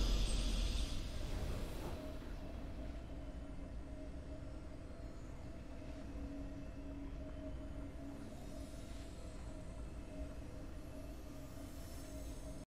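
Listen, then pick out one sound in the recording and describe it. Calm game victory music hums steadily.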